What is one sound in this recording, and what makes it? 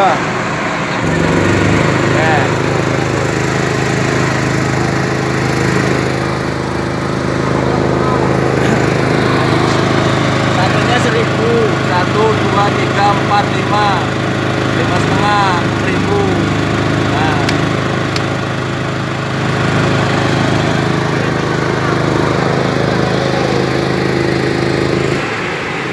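A generator engine runs with a steady low drone.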